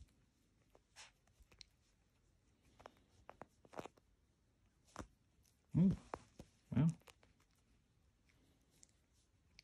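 A puppy chews and gnaws on a soft toy with small wet clicks.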